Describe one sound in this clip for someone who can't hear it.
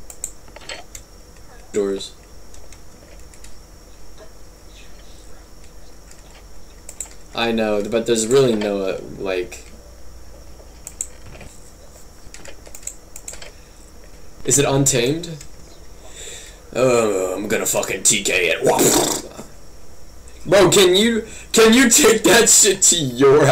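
A computer mouse clicks.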